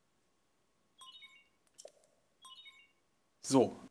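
Soft electronic chimes blip twice.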